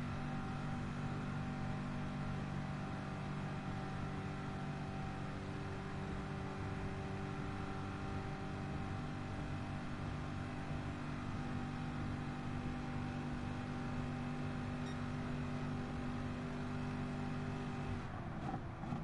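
A racing car engine roars at high, steady revs.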